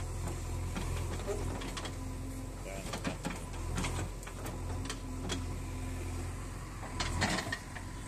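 A backhoe loader's diesel engine rumbles steadily close by.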